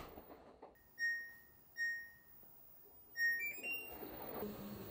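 A control panel beeps as buttons are pressed.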